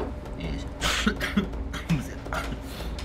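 A man coughs.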